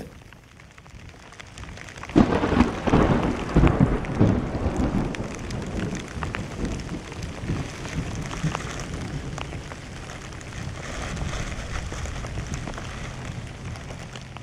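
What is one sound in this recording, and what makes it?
Wind blows and gusts outdoors.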